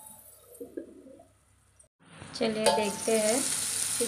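A steel lid is lifted off a wok with a metallic clink.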